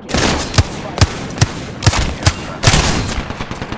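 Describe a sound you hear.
An automatic rifle fires a burst of gunshots.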